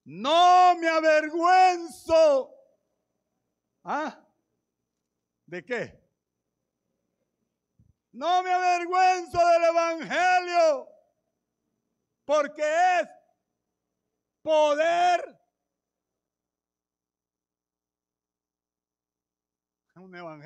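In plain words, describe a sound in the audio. A middle-aged man preaches with passion into a microphone, in bursts with long pauses, sometimes shouting.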